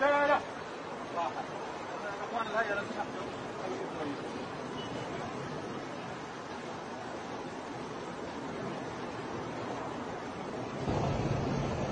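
A crowd of men murmurs and calls out outdoors.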